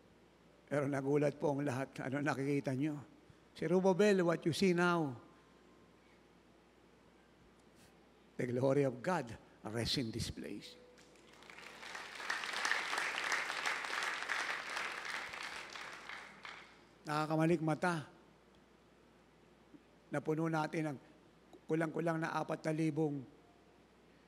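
A man speaks with animation through a microphone and loudspeakers in a large echoing hall.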